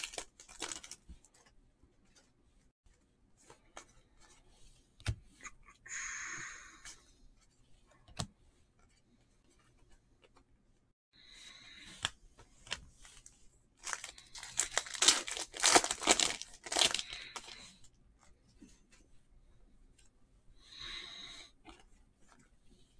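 Trading cards shuffle and rustle between hands.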